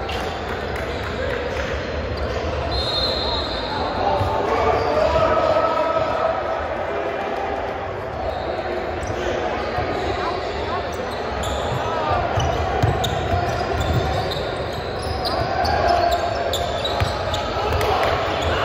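Young men call out to each other across a large echoing gym.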